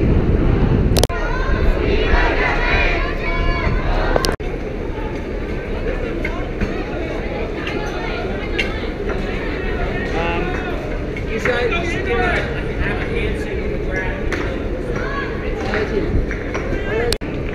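A crowd of young people talks and calls out outdoors.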